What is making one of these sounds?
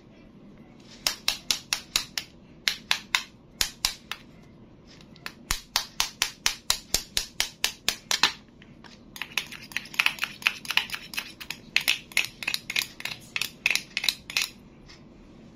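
A plastic knife taps rapidly against a plastic toy egg.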